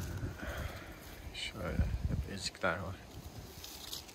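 Leaves rustle as a hand grasps an apple on a branch.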